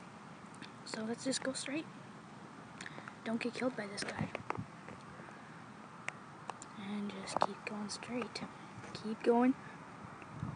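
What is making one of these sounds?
A young child talks close to a microphone.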